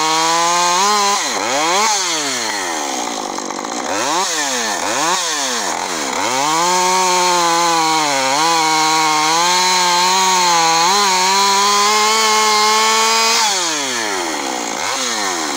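A chainsaw engine idles and revs between cuts.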